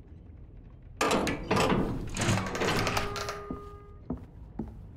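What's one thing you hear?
A metal gate creaks and clanks open.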